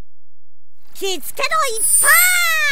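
Magical sparkles chime with high gliding tones.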